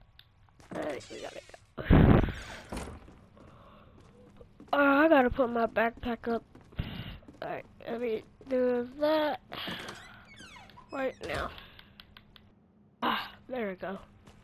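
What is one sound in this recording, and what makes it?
Footsteps thud on a wooden floor and stairs.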